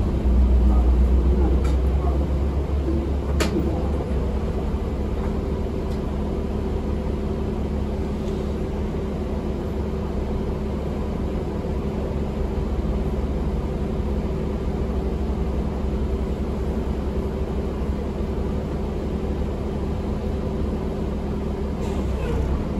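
A bus rattles and creaks as it rolls.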